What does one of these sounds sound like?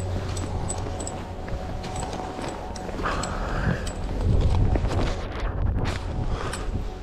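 Skis hiss through deep powder snow.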